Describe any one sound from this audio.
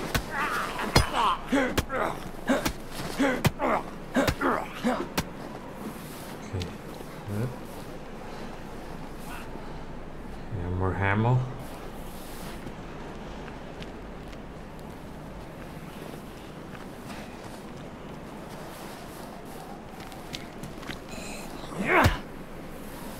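An axe strikes a body with heavy thuds.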